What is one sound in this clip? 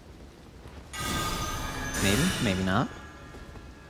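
Steel blades swing and clash.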